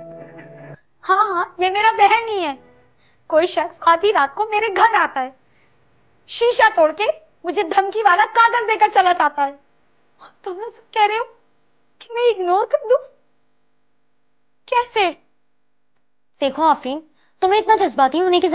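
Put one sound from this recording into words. A young woman speaks nearby, upset and agitated.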